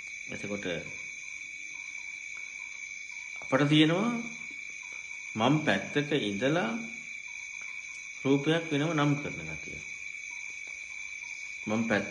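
A man speaks slowly through a microphone, in short phrases with long pauses.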